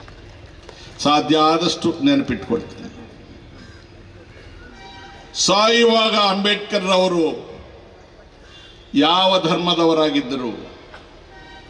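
An elderly man speaks forcefully in bursts into a microphone over loudspeakers, with pauses between phrases.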